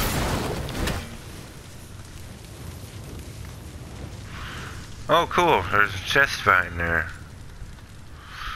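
Flames crackle and roar.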